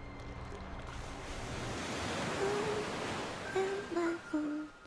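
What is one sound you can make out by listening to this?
Water churns and splashes as a small craft surfaces.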